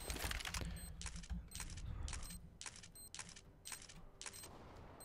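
A shotgun is loaded shell by shell with steady, rhythmic clicks.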